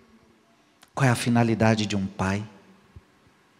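A man speaks with animation into a microphone in a large echoing hall.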